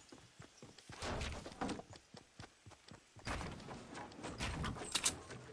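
Wooden walls are built with short thumping bursts.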